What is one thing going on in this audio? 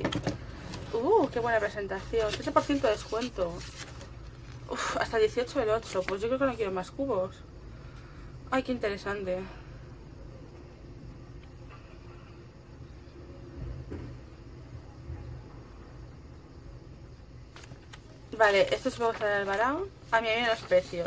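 Paper rustles and crinkles as it is pulled out and unfolded by hand.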